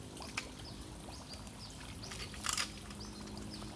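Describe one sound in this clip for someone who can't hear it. A dog paws at water, making small splashes.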